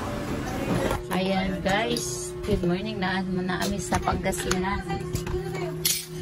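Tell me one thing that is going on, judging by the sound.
Spoons and forks clink against plates.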